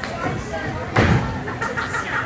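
A body thuds onto a wrestling ring mat.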